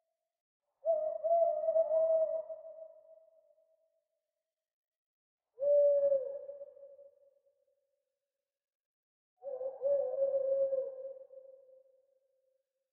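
An owl hoots in long, wavering calls, three times with pauses between.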